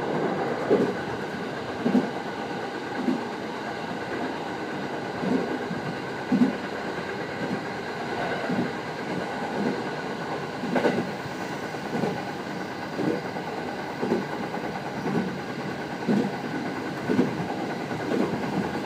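Train wheels clack rhythmically over rail joints.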